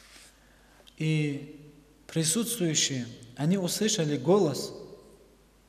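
A young man reads aloud calmly into a microphone.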